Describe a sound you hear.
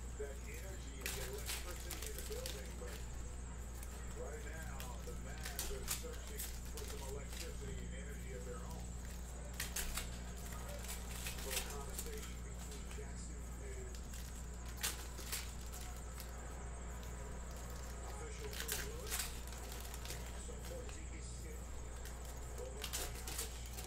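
Foil card packs crinkle and tear as hands open them.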